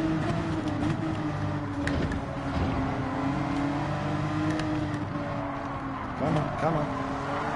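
Other racing car engines whine close by.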